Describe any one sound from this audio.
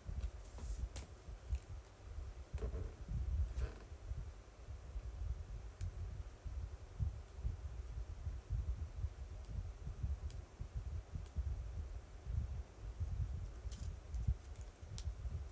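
Small clicks and taps of fingernails on plastic sound now and then.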